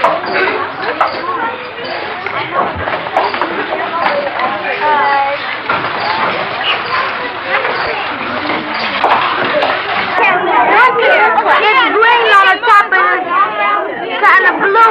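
Young children chatter and call out in a room.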